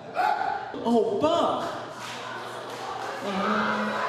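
A man speaks loudly and with animation.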